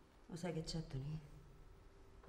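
A young woman speaks quietly and intensely close by.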